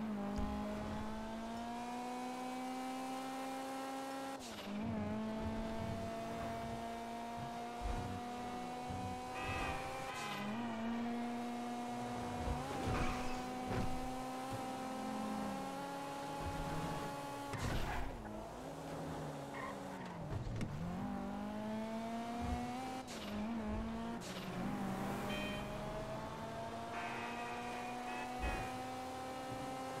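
A car engine revs high and drops in pitch as it shifts gears.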